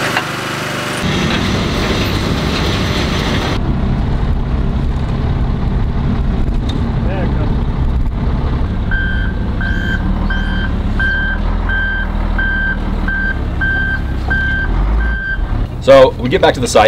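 A heavy machine's engine rumbles steadily.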